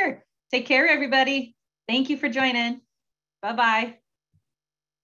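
A young woman speaks cheerfully over an online call.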